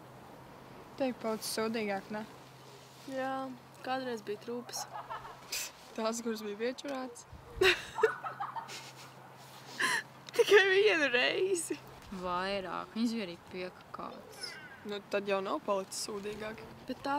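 Young women talk and laugh together close by.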